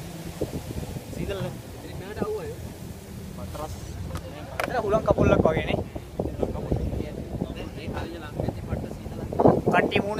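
Young men talk and call out close by.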